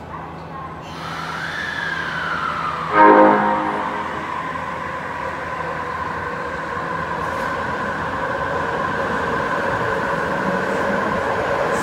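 A subway train's electric motors whine as it pulls away and picks up speed.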